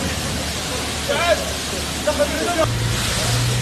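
Men shout to each other nearby.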